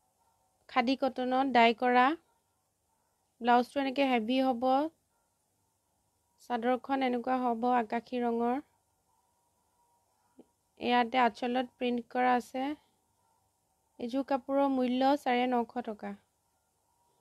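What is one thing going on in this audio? A young woman speaks close by in short phrases.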